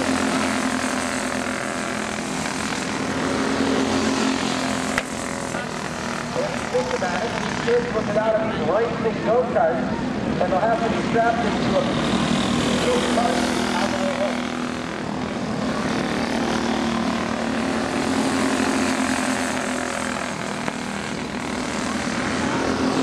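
Kart engines drone and whine steadily as the karts race around a dirt track outdoors.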